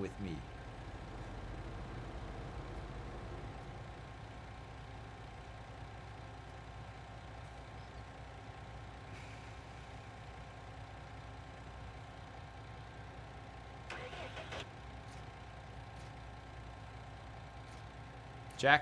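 A truck engine idles with a steady low drone.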